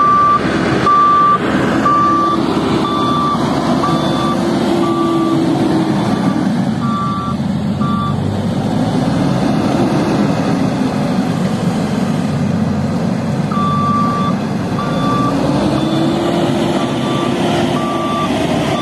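A wheel loader's diesel engine rumbles and revs up and down nearby.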